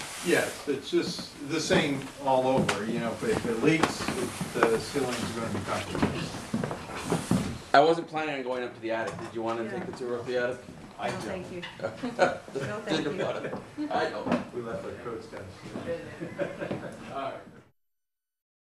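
Men and women talk at once nearby in a room.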